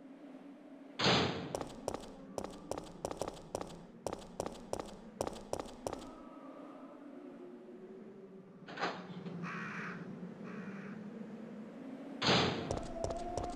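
A heavy door swings open with a loud clunk.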